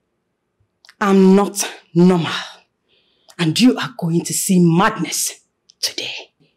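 A woman answers with surprise, close by.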